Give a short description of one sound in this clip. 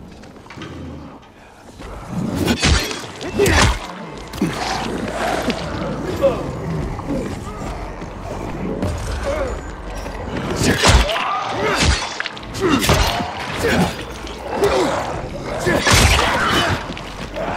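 Zombies growl and snarl.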